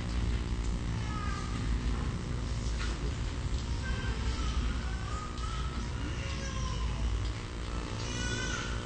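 A man speaks calmly, heard through a loudspeaker.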